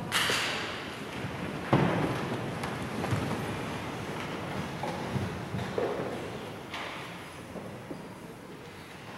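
Footsteps and soft knocks echo through a large, reverberant hall.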